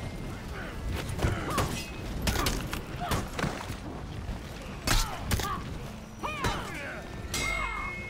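Swords and shields clash with sharp metallic clangs.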